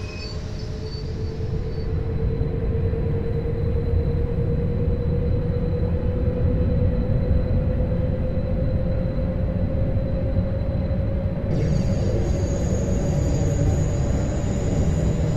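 An electric train motor whines, rising slowly in pitch as the train speeds up.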